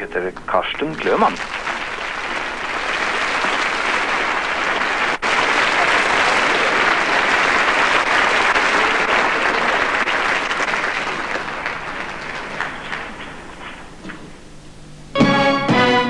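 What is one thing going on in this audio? A large audience applauds loudly.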